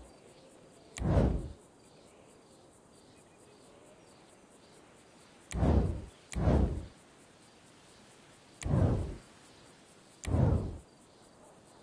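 A short whooshing sound sweeps past several times.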